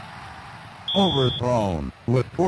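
A video game menu gives a short electronic beep.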